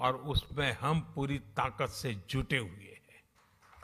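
An elderly man speaks forcefully into a microphone, heard over loudspeakers in a large hall.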